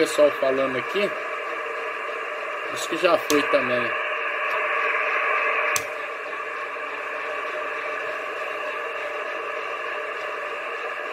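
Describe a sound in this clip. A radio loudspeaker hisses with steady static.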